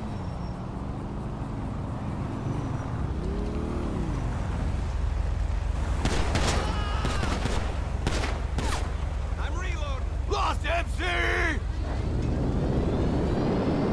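A motorcycle engine rumbles and draws closer.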